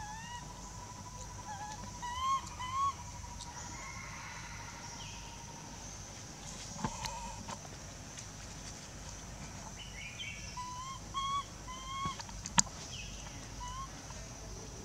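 A baby monkey squeals in short, high, rising cries.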